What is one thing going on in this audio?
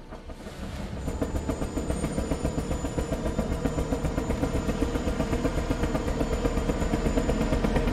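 A helicopter's rotor thumps loudly and steadily overhead.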